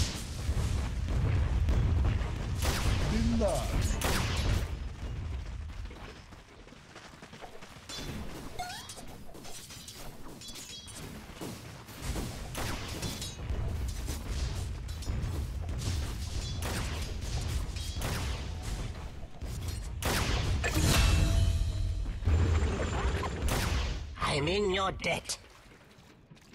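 Low rumbling booms of magic blasts pulse under the fighting.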